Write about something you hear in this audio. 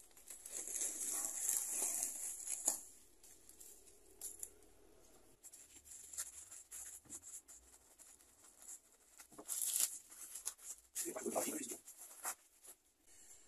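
A plastic mailer bag crinkles and rustles as it is handled.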